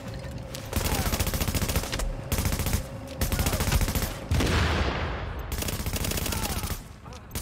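An automatic rifle fires rapid bursts close by.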